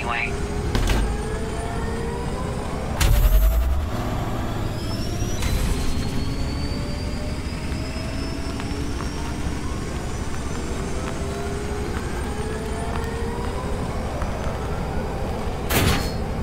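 A racing hovercraft engine whines and roars steadily, rising and falling in pitch.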